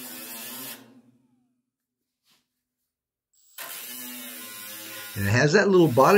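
A small power grinder whirs in short bursts.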